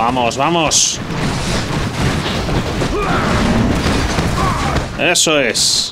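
Swords and weapons clash in a busy battle.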